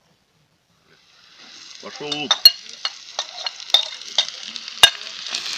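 Chopped onion sizzles and crackles in hot oil in a cast-iron cauldron.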